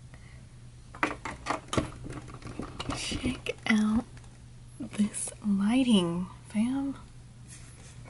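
A young woman speaks expressively and close to a microphone.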